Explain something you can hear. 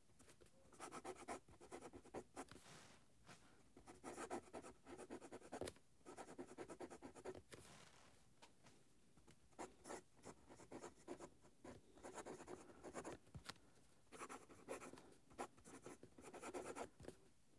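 A fountain pen nib scratches softly across paper.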